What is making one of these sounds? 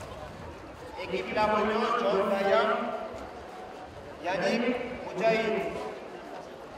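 A man speaks through a microphone over a loudspeaker outdoors.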